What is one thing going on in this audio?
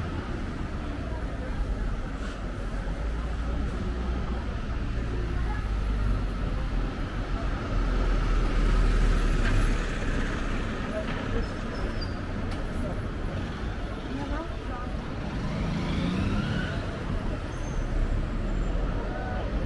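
Traffic hums along a street nearby.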